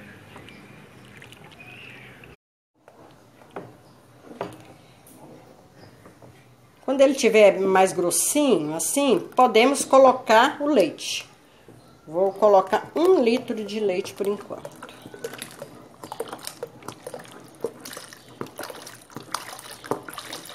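A spoon stirs and scrapes through thick batter in a bowl.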